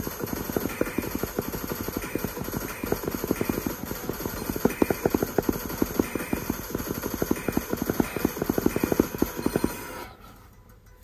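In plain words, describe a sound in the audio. Fast electronic game music plays from a tablet's speaker.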